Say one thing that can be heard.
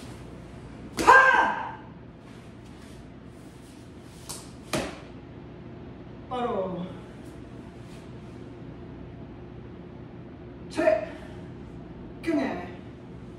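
A woman shouts sharp martial arts yells.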